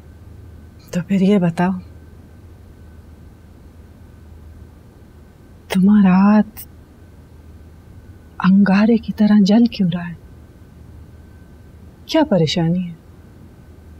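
A woman speaks softly and pleadingly, close by.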